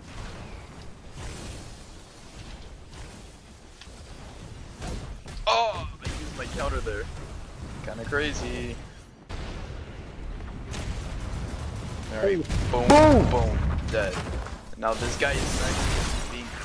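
A crackling energy blast bursts with a loud whoosh.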